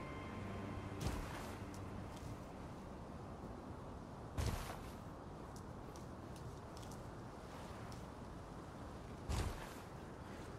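A heavy body lands with a thud.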